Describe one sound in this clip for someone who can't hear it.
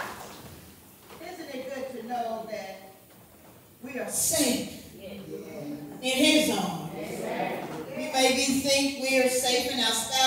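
A woman sings through a microphone with a strong, gliding voice.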